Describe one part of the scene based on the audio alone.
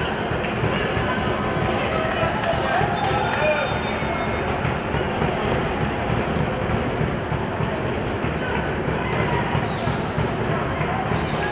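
A crowd murmurs and calls out in an open stadium.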